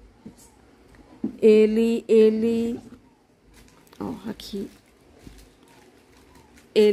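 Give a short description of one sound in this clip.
A plastic case taps and rustles as hands handle it.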